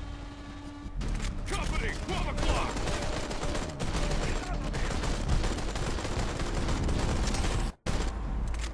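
An assault rifle fires shots.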